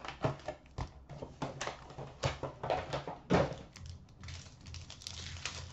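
A foil card wrapper crinkles as a pack is torn open.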